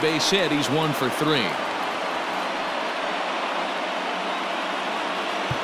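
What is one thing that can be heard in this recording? A large stadium crowd murmurs steadily.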